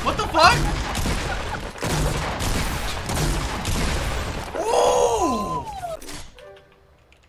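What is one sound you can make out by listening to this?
Gunshots crack rapidly in bursts.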